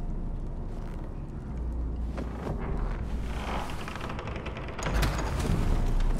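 Metal bars creak and rattle as a man forces them.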